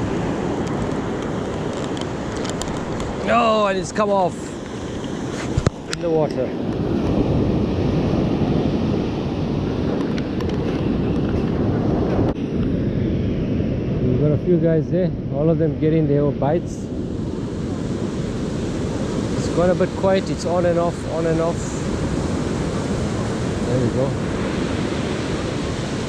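Waves break and wash up onto a beach.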